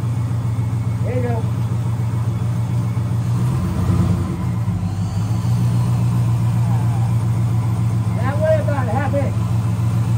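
An older man calls out from close by.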